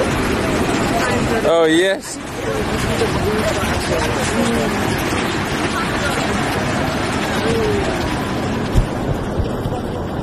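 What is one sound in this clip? Waves crash and roar onto the shore.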